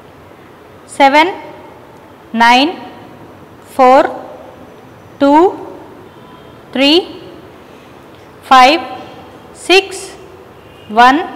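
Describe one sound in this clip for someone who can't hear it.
A young boy calls out short words one at a time, each in a bright, rising voice, close to a microphone.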